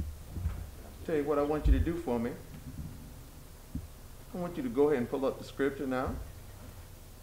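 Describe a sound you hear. A man speaks briefly and quietly close by.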